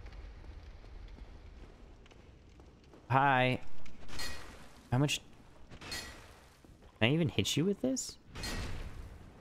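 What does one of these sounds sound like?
Heavy armoured footsteps clank on a stone floor.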